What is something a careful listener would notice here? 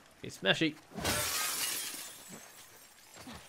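Glass and debris crunch as someone climbs through a window frame.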